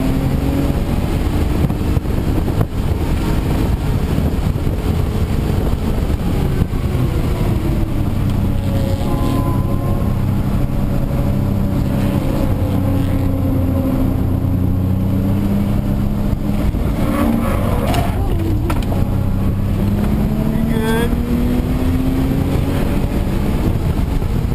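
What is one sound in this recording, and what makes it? A car engine roars loudly, rising and falling in pitch as it revs through the gears.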